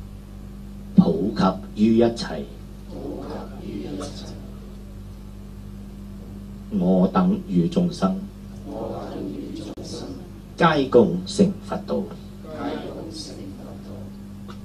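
A man chants slowly in short phrases through a microphone.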